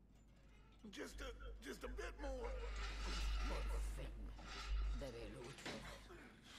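Men grunt with effort as they lift a heavy gate.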